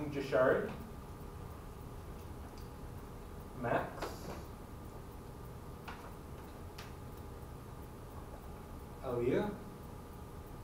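A man speaks in short bursts from across a room, with a slight echo.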